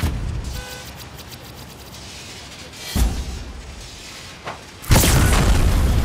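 Electricity crackles and buzzes in sharp bursts.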